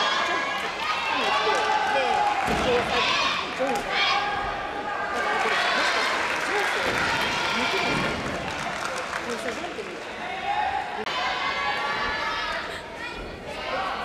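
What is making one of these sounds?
Many voices of spectators chatter and call out in a large echoing hall.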